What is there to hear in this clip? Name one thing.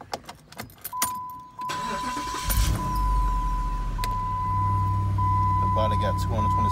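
A car's door-open warning chime beeps steadily.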